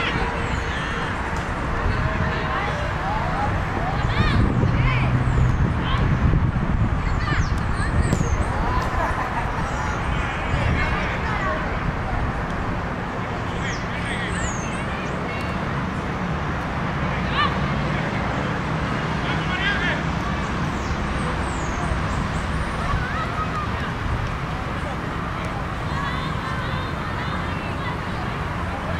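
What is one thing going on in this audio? Young women call out to each other across an open field.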